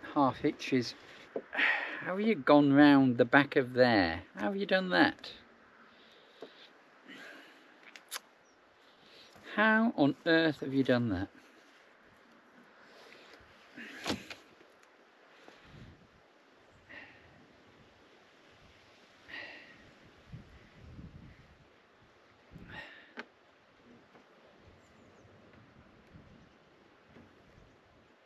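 Rope rustles and creaks as hands tie a knot.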